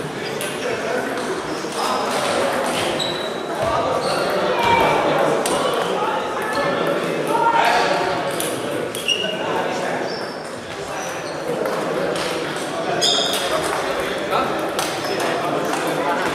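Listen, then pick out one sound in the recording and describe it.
Men talk and call out now and then, echoing in a large hall.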